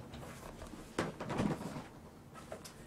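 A chair creaks and rustles.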